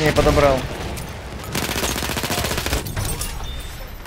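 Rifle shots crack loudly.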